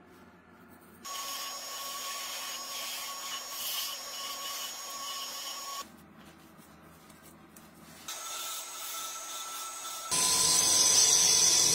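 A chisel scrapes and cuts into spinning wood with a harsh hiss.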